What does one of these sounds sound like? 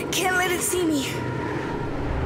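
A boy speaks in a frightened whisper.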